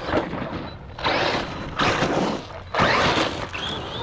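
Tyres crunch and scatter loose dirt.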